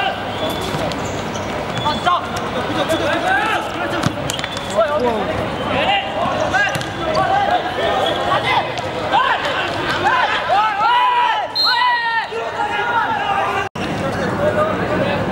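A crowd of young men shouts and cheers nearby outdoors.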